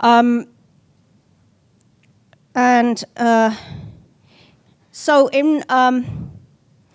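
A woman speaks into a microphone in short, drawn-out phrases.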